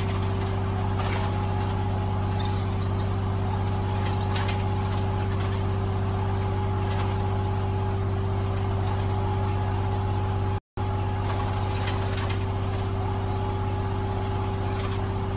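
A bus engine drones steadily.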